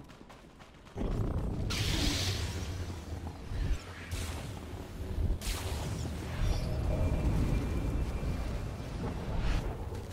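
Energy blasts and clashes ring out in a fight.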